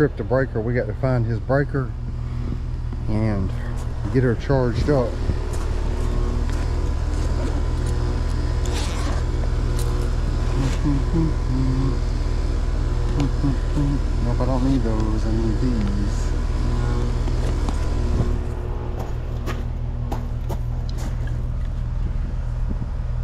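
An outdoor air conditioner unit hums steadily nearby.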